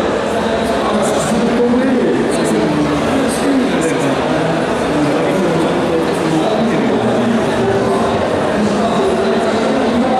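A young man speaks into a microphone over loudspeakers, with a slight echo.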